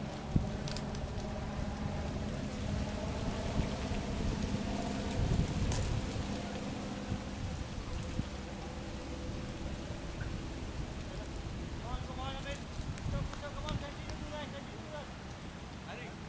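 Wind rumbles across the microphone.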